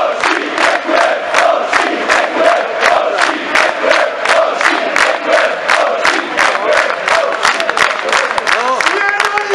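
A large crowd claps in a fast, steady rhythm outdoors.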